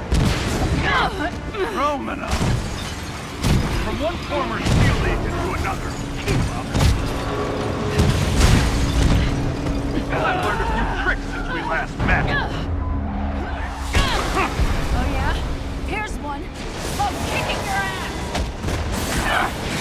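Explosions boom and debris crashes.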